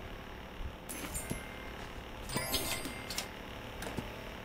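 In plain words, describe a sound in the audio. Bright electronic chimes ring out as gems are collected.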